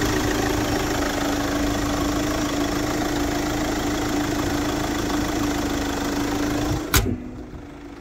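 A car engine idles with a steady hum close by.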